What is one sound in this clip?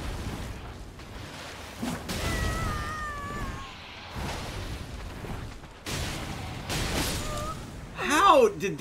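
Heavy blows and slashes thud and crash.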